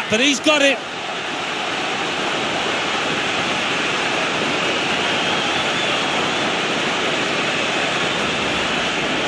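A large crowd cheers loudly, swelling in a roar.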